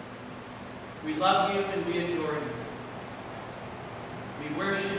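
A man speaks calmly through a microphone in a room with a slight echo.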